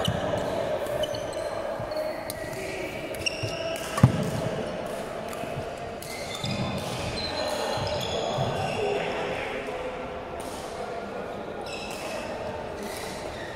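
Sports shoes squeak sharply on a wooden floor in a large echoing hall.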